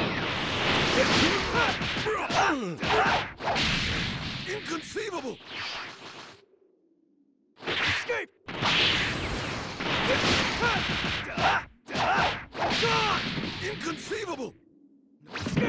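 Punches and kicks land with heavy thuds in a fast fight.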